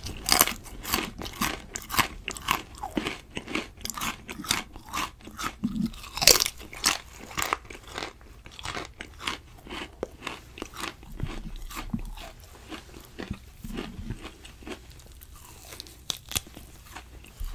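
Crisp food crunches close to a microphone.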